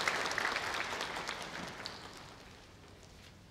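A wind band plays a final chord that rings out in a large echoing hall.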